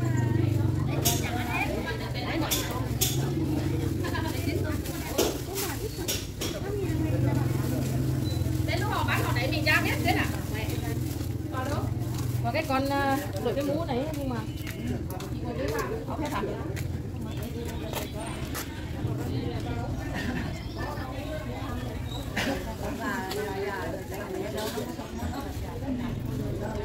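A woman talks at close range.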